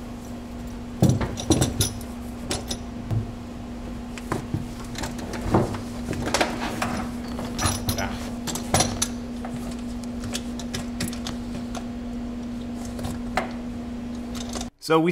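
Metal pedal parts clack and knock as they are handled.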